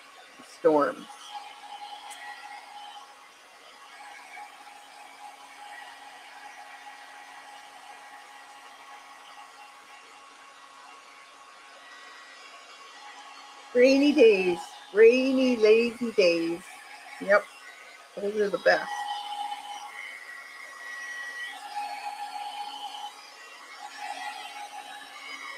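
A heat gun whirs and blows steadily.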